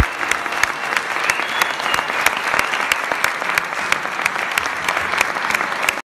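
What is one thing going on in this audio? A small ensemble plays plucked and bowed string instruments.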